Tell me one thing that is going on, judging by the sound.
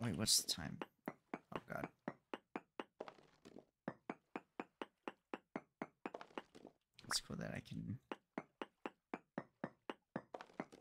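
A pickaxe strikes stone in quick, steady blows.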